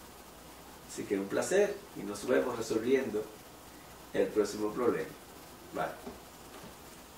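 A middle-aged man speaks calmly and clearly close to the microphone, in short phrases with pauses.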